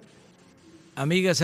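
An elderly man begins speaking into a microphone.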